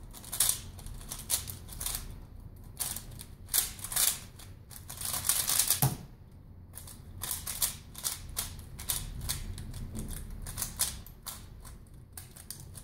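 A puzzle cube clicks and clacks rapidly as it is turned.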